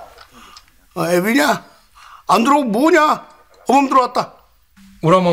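An older man speaks anxiously into a phone, close by.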